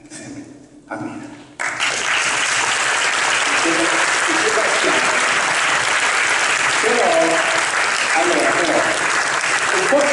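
A man speaks into a microphone, heard through loudspeakers in a large hall.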